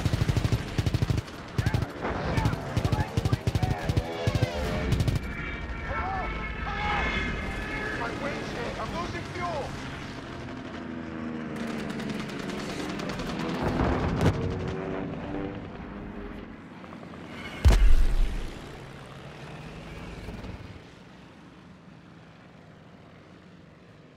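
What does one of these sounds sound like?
A propeller plane's engine drones and roars, rising and falling in pitch.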